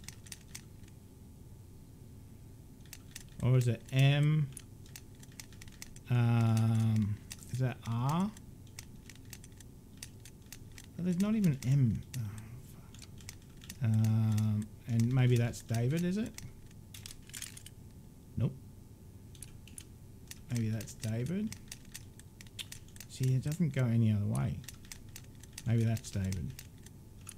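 Metal combination lock dials click as they turn.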